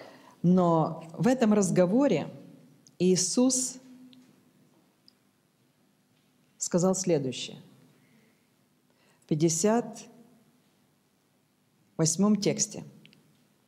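A middle-aged woman reads aloud calmly into a microphone, in short phrases with pauses.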